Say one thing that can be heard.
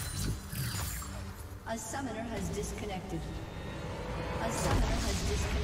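Game spell effects crackle and boom.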